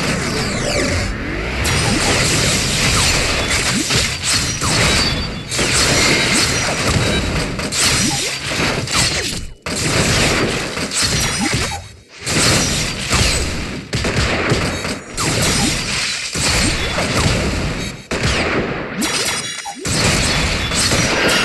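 Swords clash and slash in a battle.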